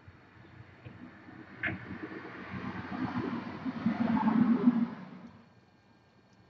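A hummingbird's wings whir loudly close by.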